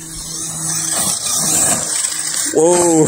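Loose dirt sprays and patters as a toy car skids.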